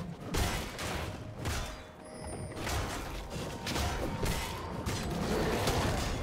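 Video game spell effects burst and whoosh during a fight.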